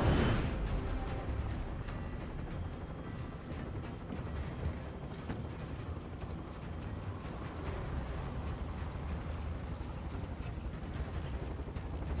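Wind rushes past an open helicopter door.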